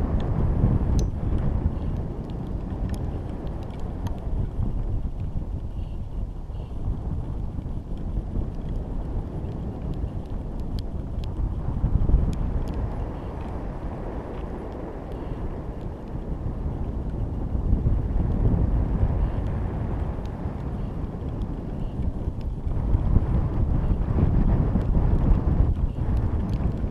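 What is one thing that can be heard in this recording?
Small hanging ornaments tap and clink lightly against each other.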